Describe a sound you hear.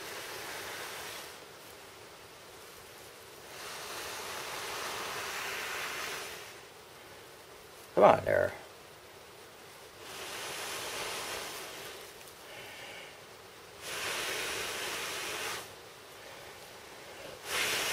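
A man blows steadily into a bundle of tinder in long breaths.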